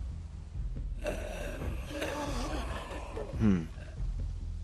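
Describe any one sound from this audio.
A zombie groans and snarls close by.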